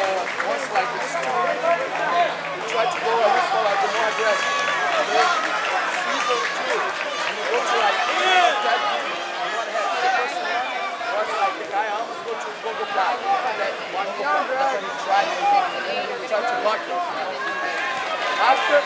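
A large crowd talks and shouts throughout in a big echoing hall.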